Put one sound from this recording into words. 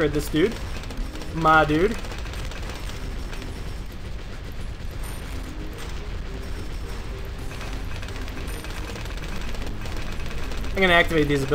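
Game explosions rumble and pop continuously.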